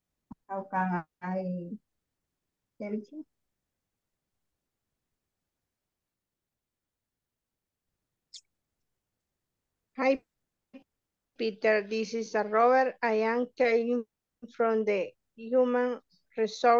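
A woman speaks calmly over an online call, in short phrases with pauses.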